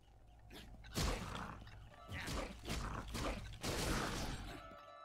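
Video game sound effects zap and crackle during a fight.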